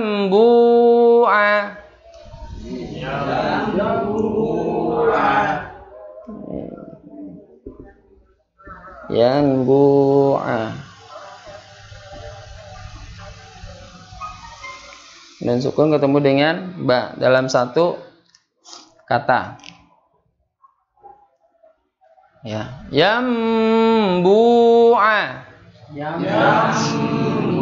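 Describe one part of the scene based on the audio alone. A man speaks and recites in a melodic, chanting voice close to a microphone.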